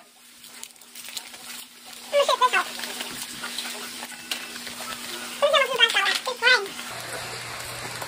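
A chip bag crinkles.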